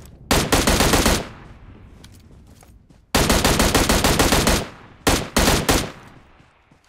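A rifle fires in rapid bursts, each shot sharp and loud.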